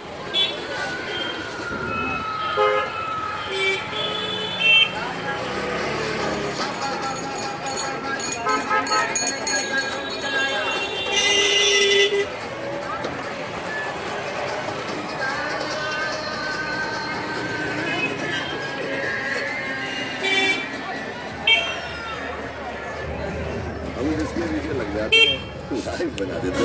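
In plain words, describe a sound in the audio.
Film music with singing plays.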